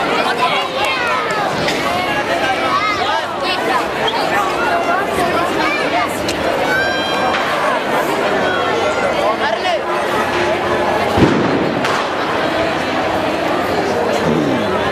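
A crowd of people chatters loudly outdoors on a street.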